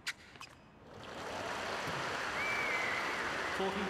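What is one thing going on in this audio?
A crowd cheers and applauds loudly.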